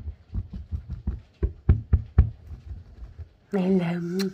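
Fingers tap quickly on a rug close by.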